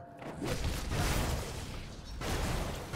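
Flames burst with a loud whooshing roar.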